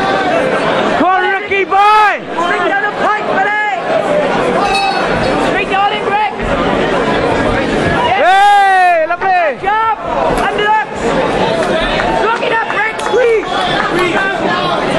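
Men in the crowd shout loudly, their voices rising and falling.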